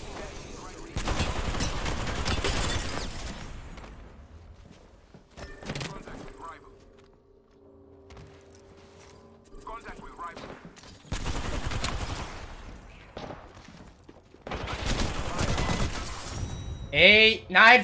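Gunshots crackle in quick bursts.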